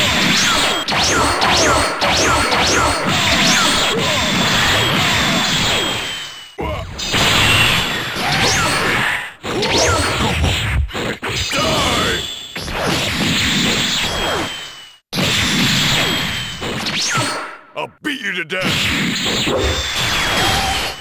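Punches and kicks land with sharp thuds and whooshes.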